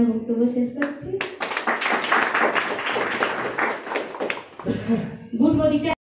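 A woman speaks into a microphone nearby.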